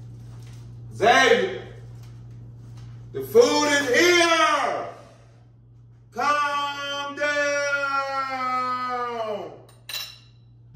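A man speaks loudly and with animation close by, drawing out his words.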